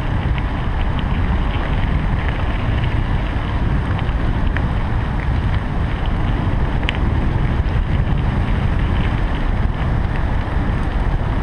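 Wind rushes and buffets loudly against the microphone outdoors.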